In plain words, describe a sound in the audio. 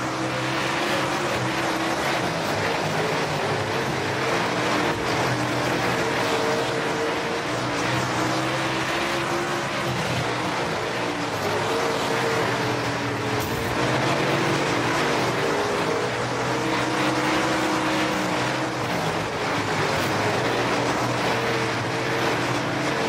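Tyres skid and spray over loose dirt.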